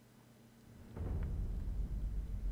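Footsteps run across wooden boards.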